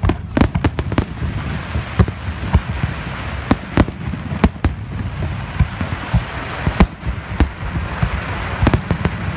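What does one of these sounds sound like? Fireworks crackle and sizzle after bursting.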